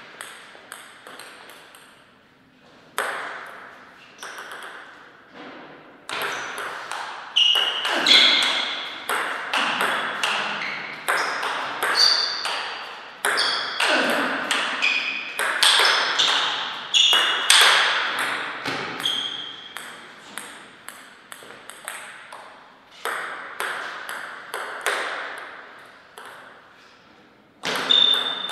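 A table tennis paddle strikes a ball.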